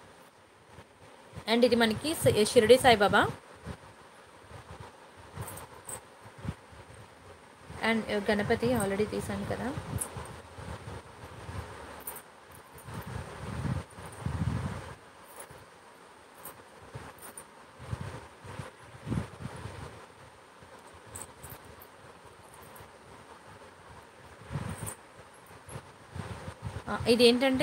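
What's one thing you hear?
Small metal pendants clink softly as fingers handle them.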